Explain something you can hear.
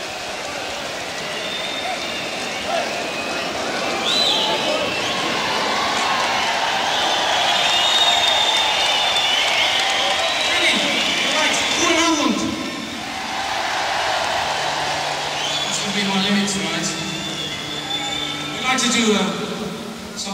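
A rock band plays live music.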